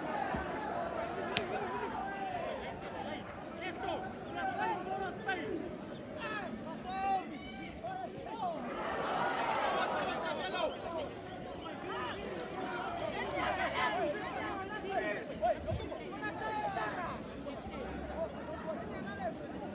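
Spectators nearby chatter.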